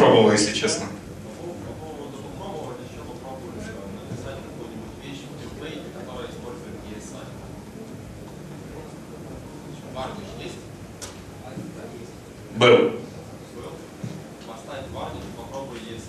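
A young man talks quietly at a distance without a microphone.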